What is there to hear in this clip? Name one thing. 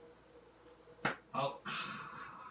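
An elderly man claps his hands.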